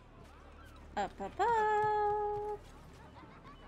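A young woman sings out a long, loud note close to a microphone.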